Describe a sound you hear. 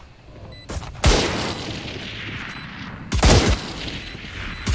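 Gunshots crack loudly and echo.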